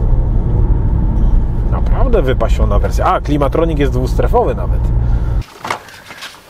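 A car engine rumbles steadily inside a moving car.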